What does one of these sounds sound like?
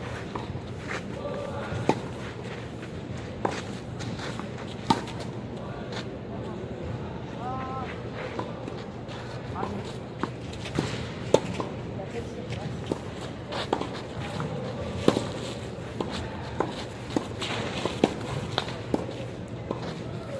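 Shoes scuff and slide on a clay court.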